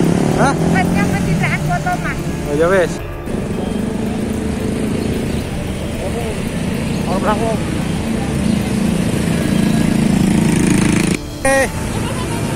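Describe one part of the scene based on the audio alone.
Motorcycle engines rumble and idle nearby.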